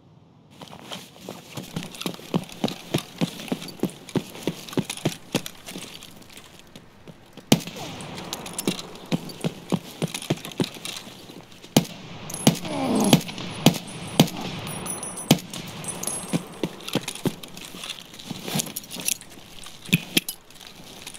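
Footsteps tread steadily on hard pavement.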